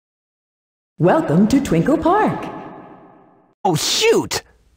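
Cartoonish video game sound effects swoop and chirp.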